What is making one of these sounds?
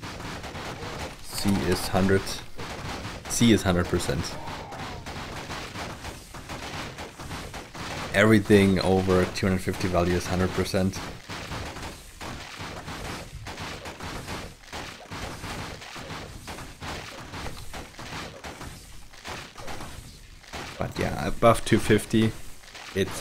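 Swords clang and strike repeatedly in a fight.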